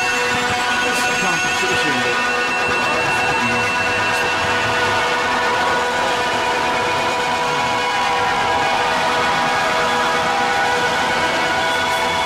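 A ceiling fan whirs steadily.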